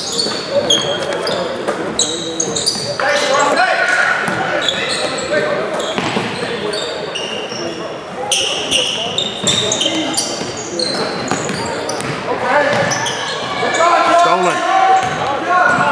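Voices of players and spectators echo in a large gym.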